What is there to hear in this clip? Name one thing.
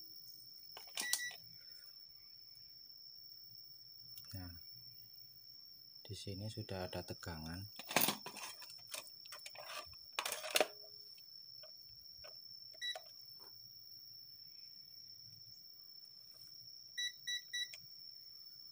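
A multimeter beeps in short, sharp bursts.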